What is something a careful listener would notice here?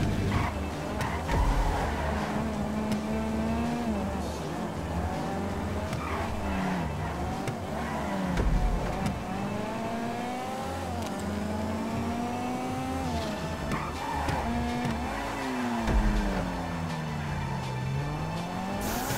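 A race car engine revs high and shifts gears up and down.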